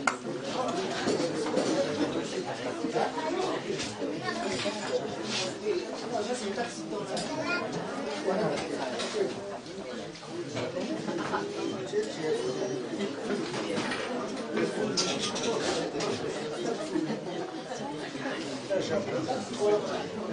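A crowd of men and women chatter and murmur all around.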